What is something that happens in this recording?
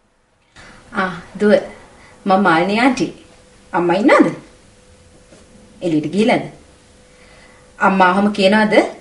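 A young woman talks calmly into a telephone, close by.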